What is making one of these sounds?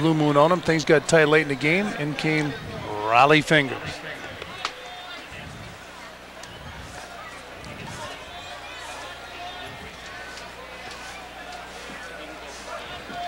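A crowd murmurs softly in the stands of an open-air stadium.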